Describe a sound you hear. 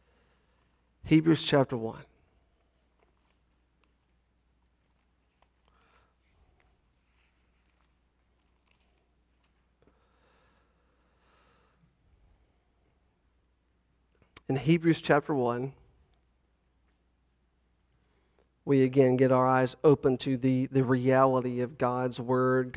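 A man speaks calmly into a microphone in a large room, in short bursts between long pauses.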